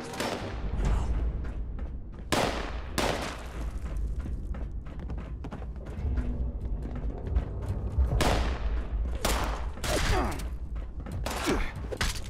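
Footsteps thud across hard ground.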